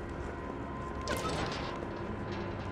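A metal gate rattles and swings open.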